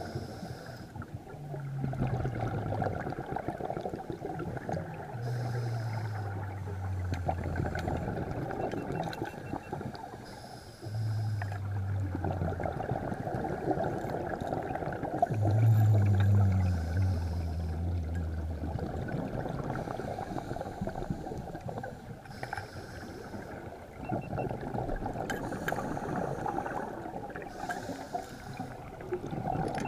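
A steady underwater rush of moving water murmurs throughout.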